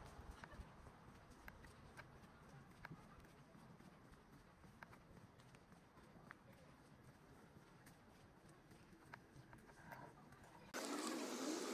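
Footsteps tap on a paved walkway.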